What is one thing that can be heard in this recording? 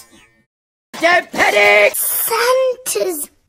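A small boy shouts with excitement.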